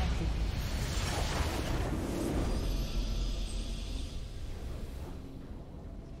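A triumphant game fanfare swells loudly and then fades away.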